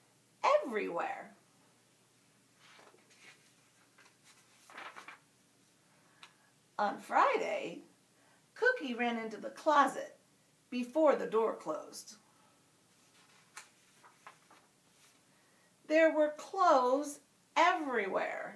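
A woman reads aloud expressively, close by.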